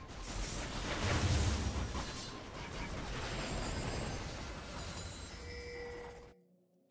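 Fantasy battle sound effects clash and crackle from a video game.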